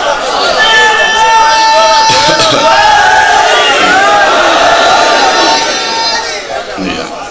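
A large crowd of men chants loudly in unison in an echoing hall.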